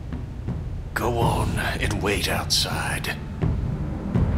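A middle-aged man speaks in a low, gruff voice.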